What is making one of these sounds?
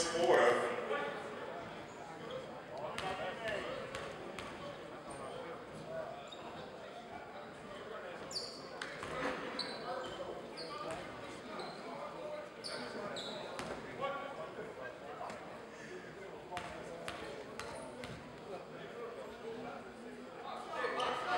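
Spectators chatter in an echoing gym.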